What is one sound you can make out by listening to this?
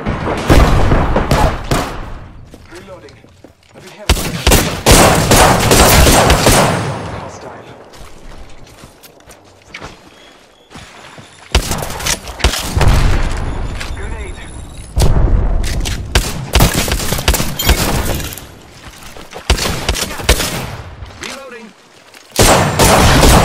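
Rapid gunfire bursts loudly in quick volleys.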